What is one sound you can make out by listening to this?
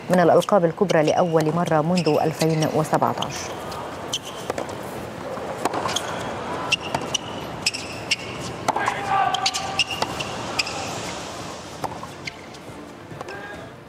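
Tennis balls are struck with sharp pops back and forth.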